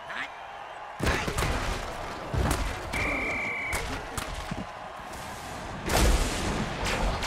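Armoured players crash together in heavy tackles.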